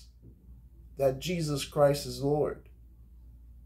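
A man speaks slowly and calmly, close by.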